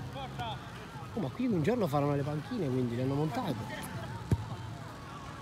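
A football thuds off a player's foot.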